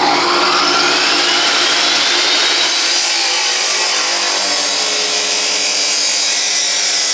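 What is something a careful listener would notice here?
An angle grinder whines at high speed.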